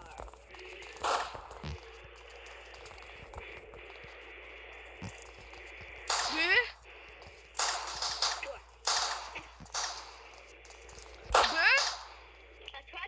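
A sniper rifle fires loud, sharp shots.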